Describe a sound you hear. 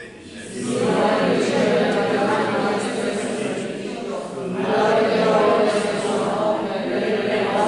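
A man speaks or chants steadily through a microphone, echoing in a large hall.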